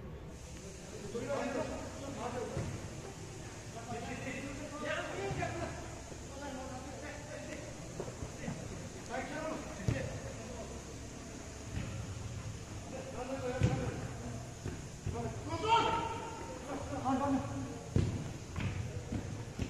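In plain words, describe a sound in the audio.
Men shout and call out across an echoing indoor hall.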